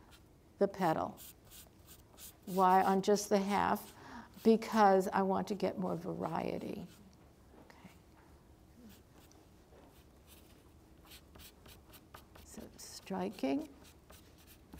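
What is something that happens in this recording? An elderly woman speaks calmly into a close microphone, pausing between phrases.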